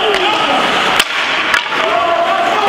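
A hockey stick sharply clacks against a puck.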